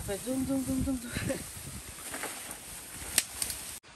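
Leafy bamboo branches rustle as they are dragged.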